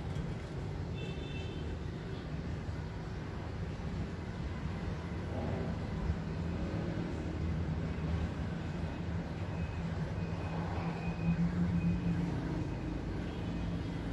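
A small bird chirps softly.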